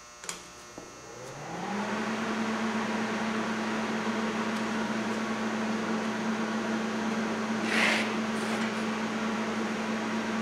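A welding machine starts up with a rising whine and then hums steadily.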